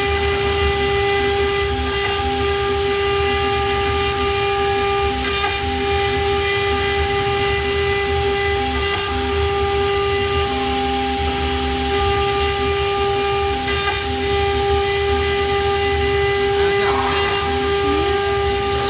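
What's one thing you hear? A CNC router bit carves into a wood board.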